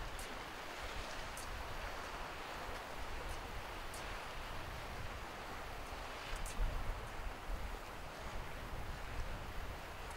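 Waves wash against rocks along the shore.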